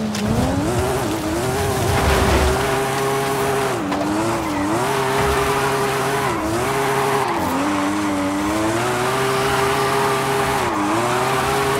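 A car engine roars loudly, revving up and dipping as the gears shift.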